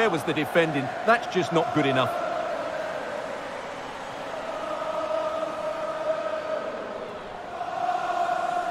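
A large stadium crowd cheers and roars throughout.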